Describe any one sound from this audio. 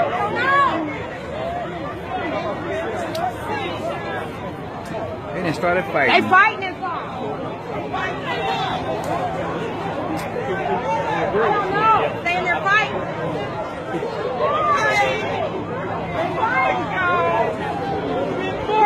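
A crowd of men and women shout and talk excitedly nearby, outdoors.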